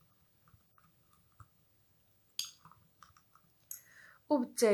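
A spoon clinks softly against a glass while stirring.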